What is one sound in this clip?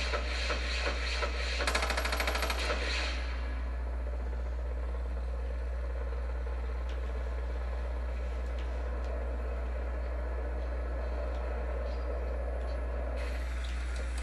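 A helicopter's rotor thumps steadily as it flies low and lands.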